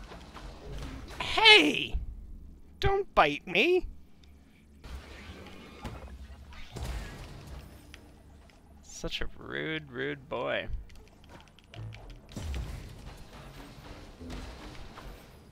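Sword slashes and impacts clash in a video game.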